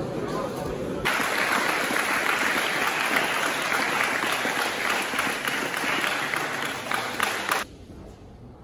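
A crowd applauds and cheers loudly in a large echoing hall.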